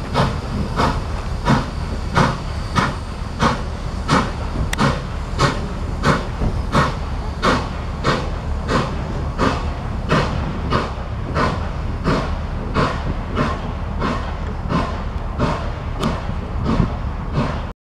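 A steam locomotive chuffs rhythmically as it passes close by.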